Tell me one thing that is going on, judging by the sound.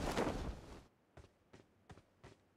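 Footsteps run at an even pace.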